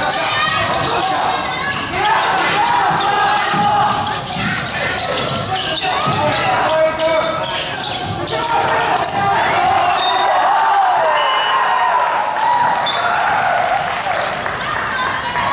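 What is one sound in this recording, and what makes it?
Spectators and players shout and chatter in an echoing gym.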